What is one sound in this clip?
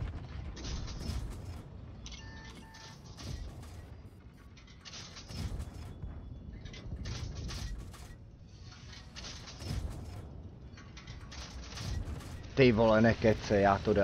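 Shells explode with sharp, heavy booms.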